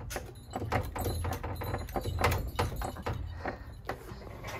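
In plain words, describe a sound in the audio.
A door rattles and clicks as it is pulled open.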